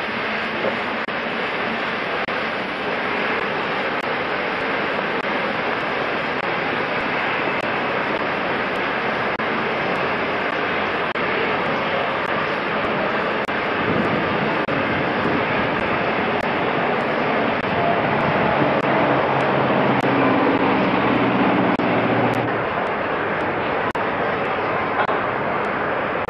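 A steam locomotive hisses loudly and steadily.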